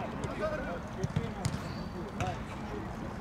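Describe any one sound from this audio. A football thumps as a player kicks it.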